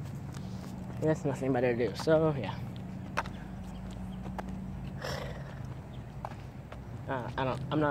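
A young man talks close by, casually.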